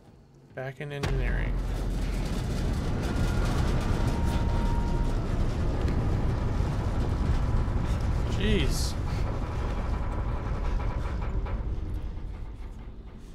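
A low, steady rumble of machinery drones.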